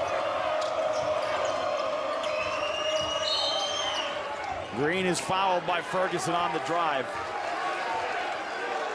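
A large crowd cheers and murmurs in an echoing hall.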